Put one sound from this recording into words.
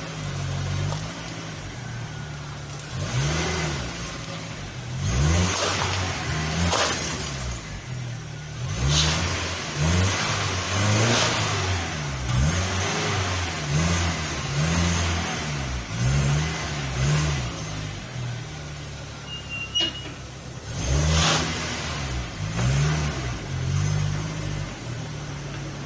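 A car engine idles and revs up and down close by.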